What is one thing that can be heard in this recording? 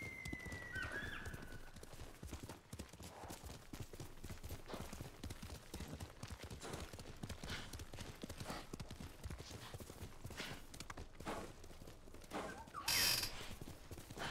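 Horse hooves pound steadily on soft ground at a gallop.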